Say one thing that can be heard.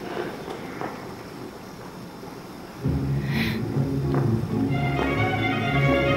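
Ballet shoes tap and scuff lightly on a wooden stage.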